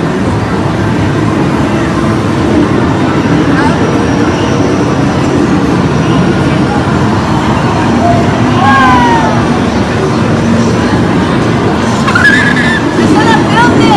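Arcade machines beep, jingle and play music all around in a loud, busy hall.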